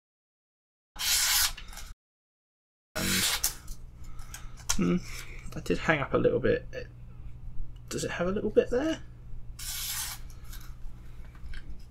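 A knife blade slices through paper with a soft rasp.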